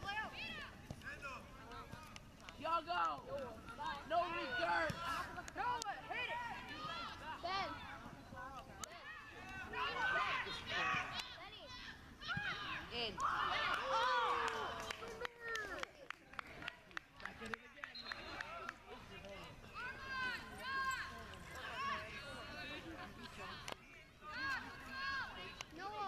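Spectators cheer and shout excitedly outdoors, close by.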